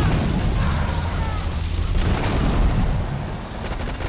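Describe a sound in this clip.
A large explosion booms and fire roars.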